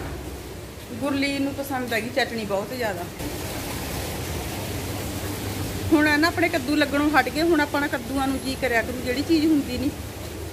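A woman speaks close by, calmly and clearly.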